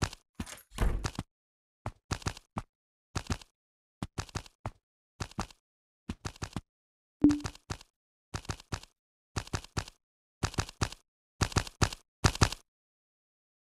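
Footsteps tread slowly across a wooden floor.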